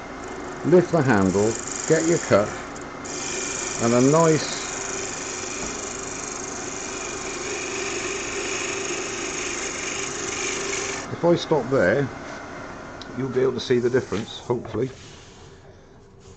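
A wood lathe hums steadily.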